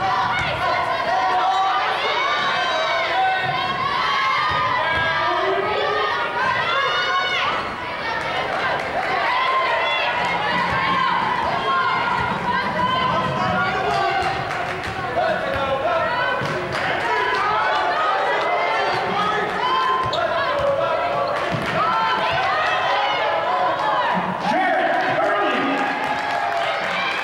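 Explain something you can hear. A sparse crowd murmurs and calls out in a large echoing gym.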